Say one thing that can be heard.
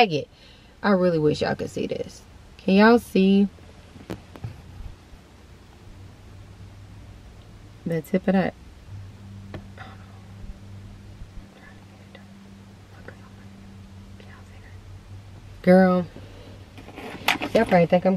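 A young woman talks close to the microphone, in short bursts with pauses.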